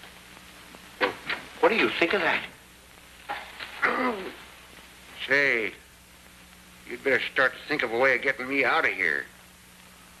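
A man speaks tensely, close by.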